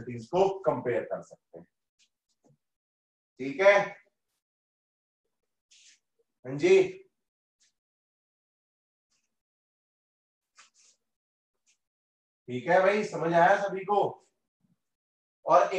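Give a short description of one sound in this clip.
A man speaks calmly in short bursts, with pauses, close to the microphone.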